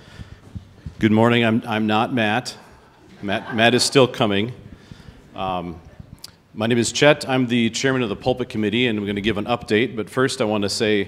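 A middle-aged man speaks calmly into a microphone over loudspeakers.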